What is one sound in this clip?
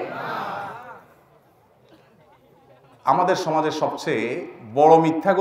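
A man preaches forcefully into a microphone, his voice rising and falling with long drawn-out phrases.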